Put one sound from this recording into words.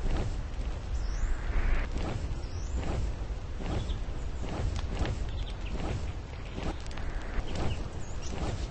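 A dragon's wings beat in a steady rhythm.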